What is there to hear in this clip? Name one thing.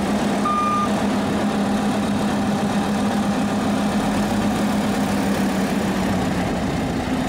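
A combine harvester engine drones loudly nearby.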